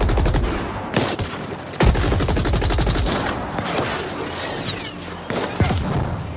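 Gunshots ring out in short, sharp bursts.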